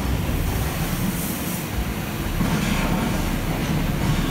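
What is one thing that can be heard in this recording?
A fog machine hisses, puffing out smoke.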